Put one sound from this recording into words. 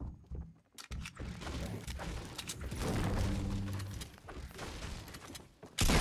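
A pickaxe strikes wood with sharp, hollow thwacks.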